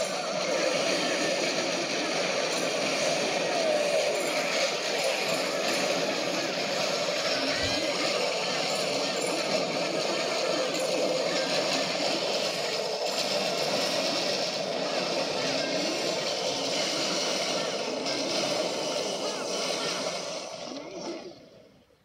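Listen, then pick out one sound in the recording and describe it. A game's battle sounds, with clashes and blasts, play through a small loudspeaker.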